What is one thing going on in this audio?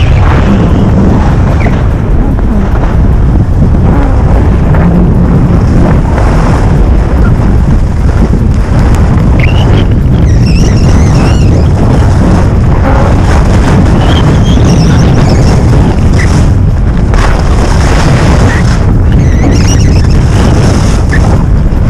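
Wind rushes loudly past, roaring steadily.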